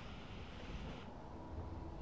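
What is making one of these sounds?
A welding torch hisses steadily, then cuts off.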